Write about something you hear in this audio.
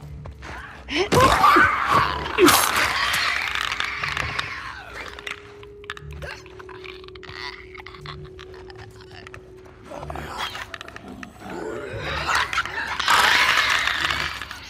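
A monstrous creature shrieks and snarls nearby.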